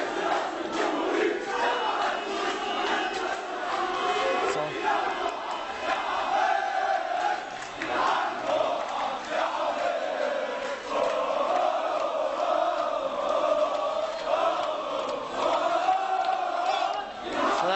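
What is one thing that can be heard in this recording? A large crowd outdoors chants and shouts loudly.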